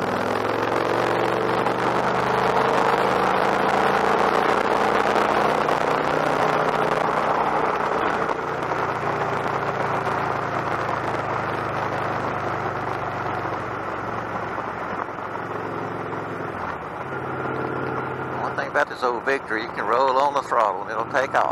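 A V-twin cruiser motorcycle engine drones while cruising at speed.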